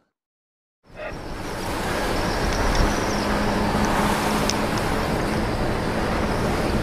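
A car drives along a road with a steady rumble.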